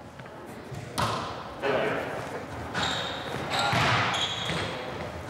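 A racket strikes a ball in a large echoing hall.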